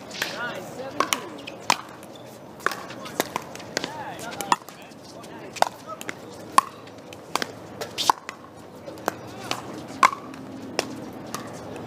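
Pickleball paddles hit a hard plastic ball back and forth outdoors.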